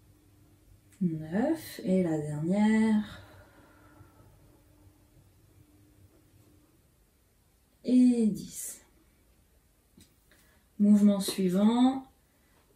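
A woman speaks calmly and clearly into a close microphone.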